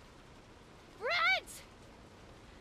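A young woman shouts out with excitement.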